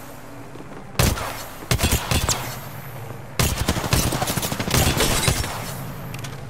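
Rapid gunshots ring out in short bursts.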